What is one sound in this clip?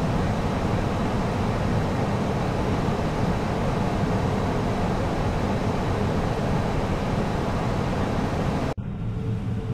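Wind noise roars steadily in the cockpit of a jet airliner in flight.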